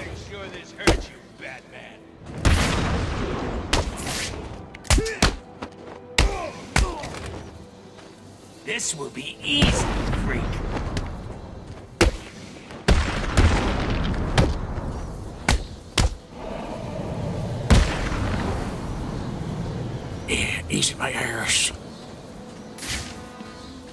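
Punches and kicks land with heavy, sharp thuds.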